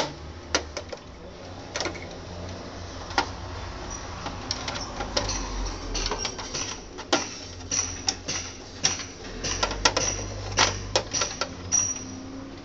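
Plastic parts knock and rattle as a hand handles them.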